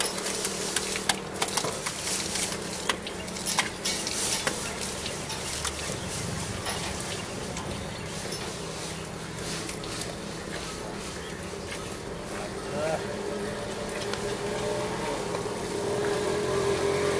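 Milk squirts in quick spurts into a metal bucket.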